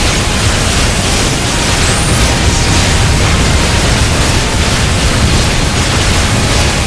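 Rapid laser shots and explosions blast continuously.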